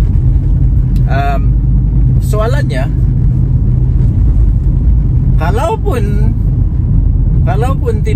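A car engine rumbles low and steady with road noise.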